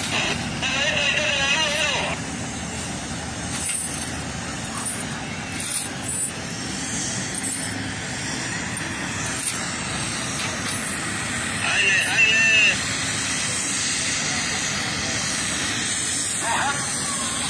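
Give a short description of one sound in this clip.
Heavy industrial machinery rumbles steadily outdoors.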